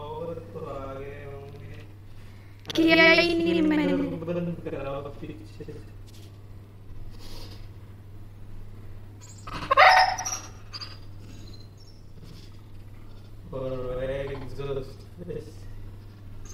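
A man talks to a dog in an excited voice close by.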